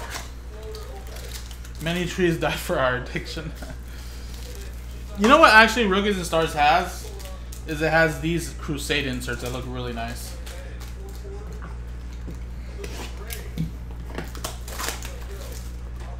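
Plastic wrappers crinkle as they are torn open.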